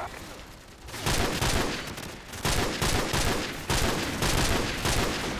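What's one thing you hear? Loud gunfire crackles in rapid bursts.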